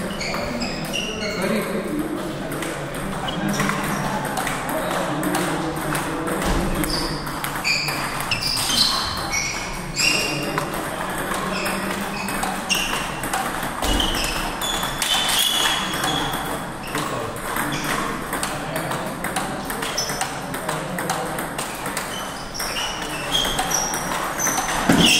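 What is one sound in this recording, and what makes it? A table tennis ball clicks back and forth between paddles and bounces on the table in an echoing hall.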